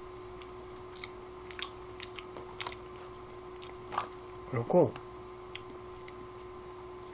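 Food wrapping crinkles in a young man's hands.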